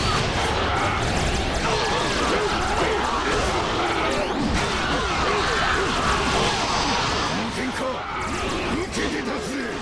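Blades slash and clash rapidly in a chaotic battle.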